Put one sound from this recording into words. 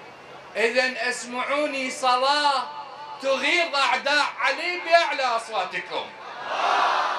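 A man declaims passionately into a microphone through loudspeakers.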